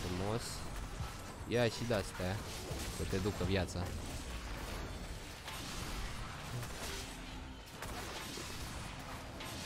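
Game battle sounds clash and whoosh steadily.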